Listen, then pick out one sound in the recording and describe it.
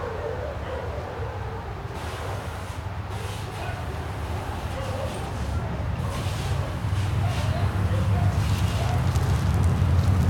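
A small dog's paws patter softly on brick paving.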